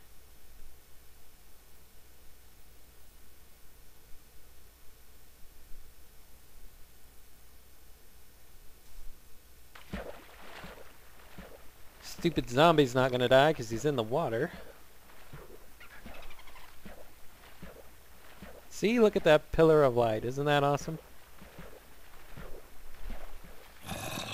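Water splashes softly as a swimmer moves through it.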